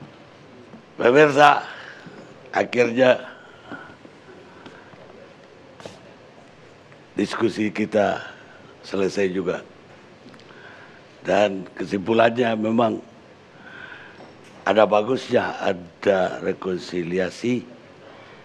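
An elderly man speaks forcefully into a microphone, in bursts with pauses.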